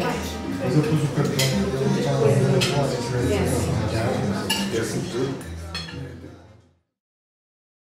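Several young men talk and chat together around a table.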